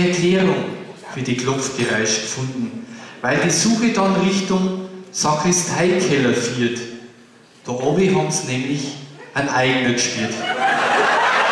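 A man speaks calmly through a microphone in a hall.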